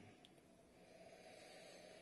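A man sips a drink.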